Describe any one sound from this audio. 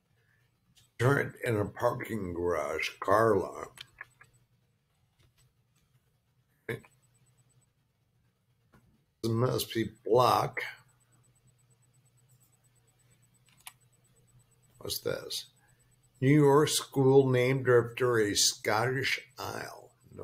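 An elderly man talks calmly into a close microphone, in short bursts with pauses.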